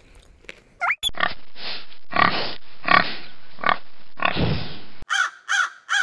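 Pigs grunt and squeal.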